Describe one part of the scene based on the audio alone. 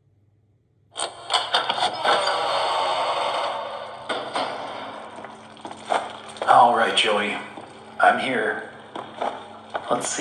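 Game sound effects and noise play from a tablet's speaker.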